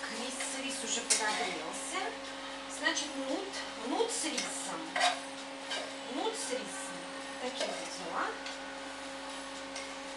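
Dishes and utensils clink and clatter close by.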